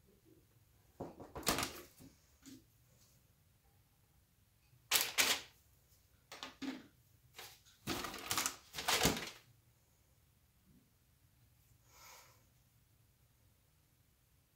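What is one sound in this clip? A wooden board knocks and scrapes against a tray as it is handled.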